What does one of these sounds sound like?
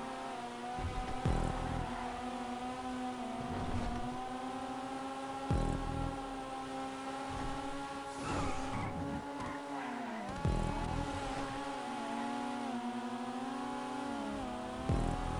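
A sports car engine roars steadily at high speed, with the pitch dropping briefly at gear shifts.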